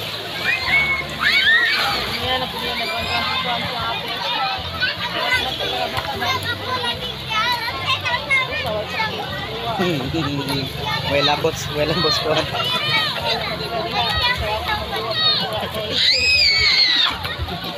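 A crowd of children shouts and squeals outdoors.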